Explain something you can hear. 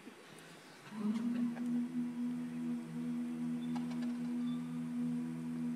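A group of men sings in harmony through microphones in a large hall.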